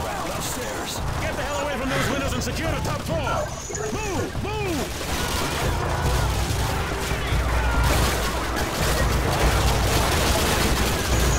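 Gunfire and explosions rumble from a video game.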